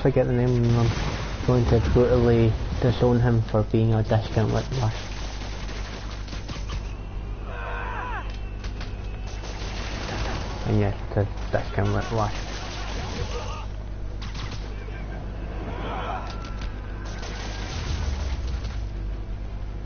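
Blows and crashes thud during a brawl.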